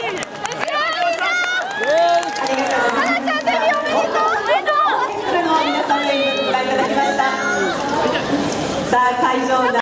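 A group of young women chant and sing loudly together.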